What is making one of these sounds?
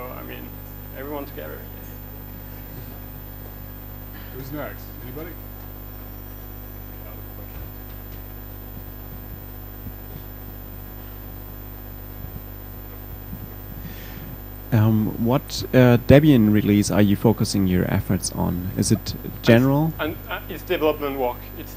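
A young man speaks to an audience, pausing, then talking at length.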